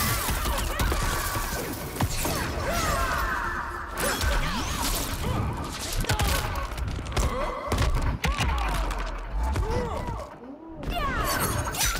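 Punches and kicks land with heavy thuds and cracks.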